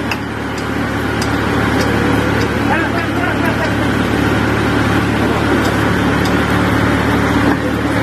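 A metal jack handle clanks as a man pumps it.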